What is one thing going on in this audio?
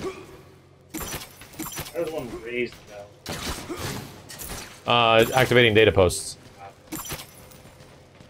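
Gunfire from a game rattles in bursts.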